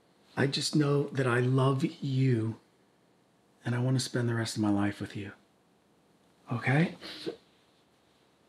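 A man speaks intensely and quietly, up close.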